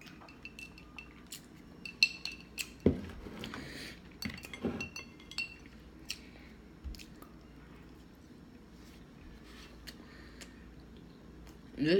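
A young woman chews food close by.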